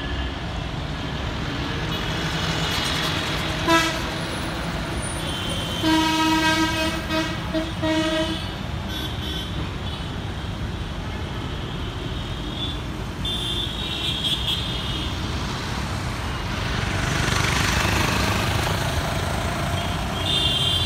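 Steady city traffic rumbles past, with buses, cars and motorcycles.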